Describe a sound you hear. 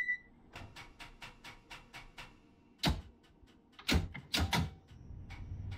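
Clicks and clunks sound from train controls.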